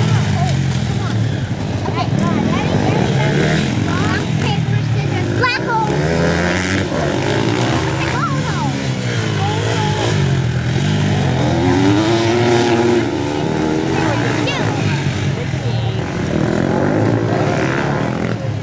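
Dirt bike engines buzz and rev loudly as they race past.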